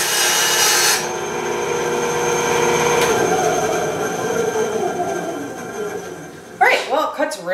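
A band saw motor winds down and fades.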